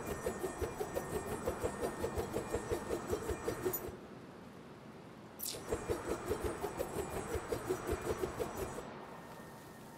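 A small flying gadget whirs with a fast, pulsing buzz.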